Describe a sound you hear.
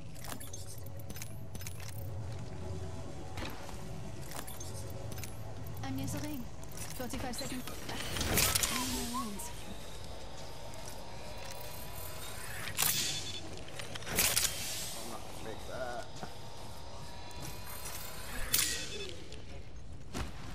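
Game sound effects click and whoosh as items are picked up and used.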